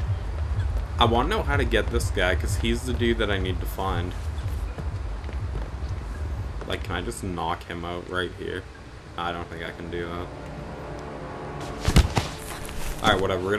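A young man talks casually and close into a microphone.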